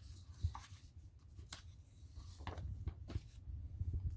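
Sheets of paper rustle as they are handled.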